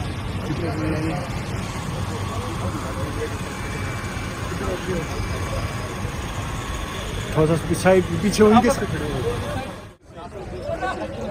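Men talk and call out outdoors amid a crowd.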